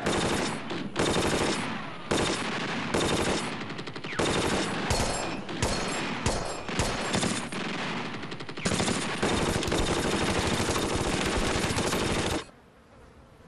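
Rifles and machine guns fire in loud, rapid bursts.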